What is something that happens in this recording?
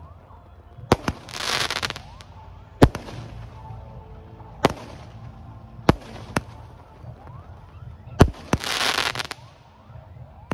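Fireworks crackle in bursts of sizzling sparks.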